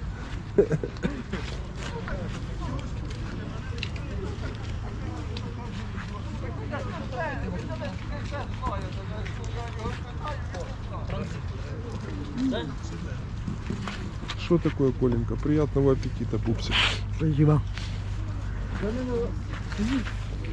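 People chat in the distance outdoors.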